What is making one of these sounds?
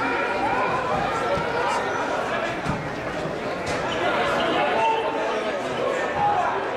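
Wrestlers' shoes squeak and thump on a mat.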